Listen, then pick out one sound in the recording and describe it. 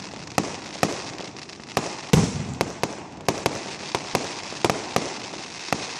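Fireworks crackle and sizzle as the sparks fall.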